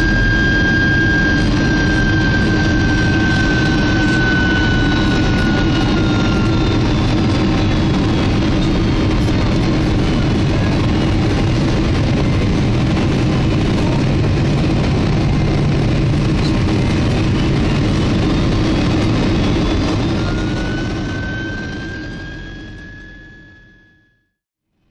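Jet engines roar steadily with a high whine, heard from inside an aircraft cabin, then fade away.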